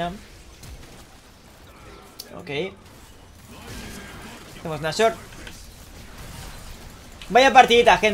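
Magic spell effects burst and crackle during a fight.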